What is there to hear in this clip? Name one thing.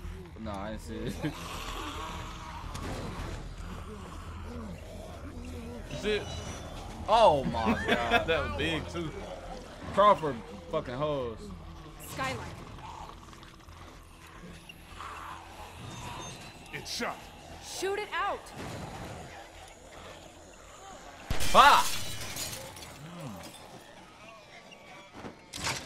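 A young man talks with animation into a headset microphone.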